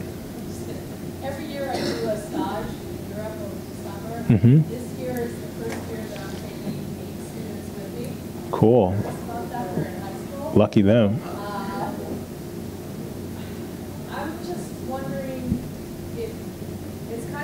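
A woman speaks from across a room.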